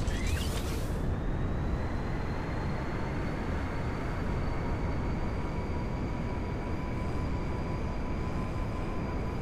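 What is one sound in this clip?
A hovering car's engine hums steadily with a high whine.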